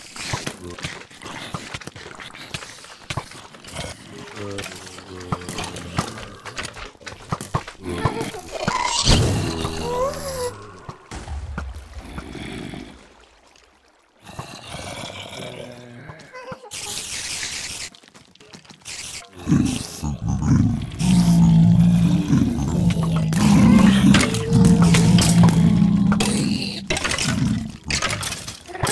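Zombies groan in a crowd nearby.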